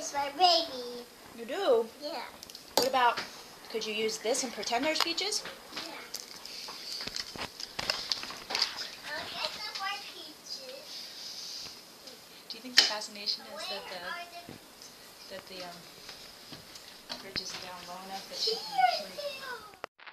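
A toddler girl babbles and talks excitedly close by.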